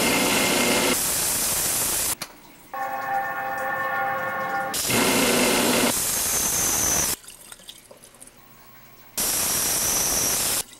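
Water from a tap pours into a metal sink.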